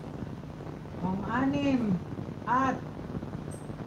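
A middle-aged woman speaks close to a microphone in a sing-song voice.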